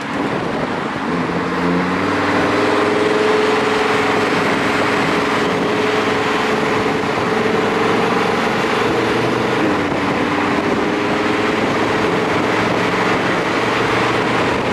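A sports car engine hums steadily while driving.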